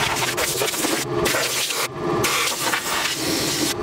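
Clothing rustles and rubs right against the microphone.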